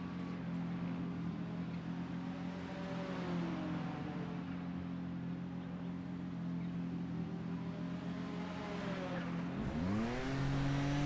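A race car engine idles with a steady low hum, then revs up sharply.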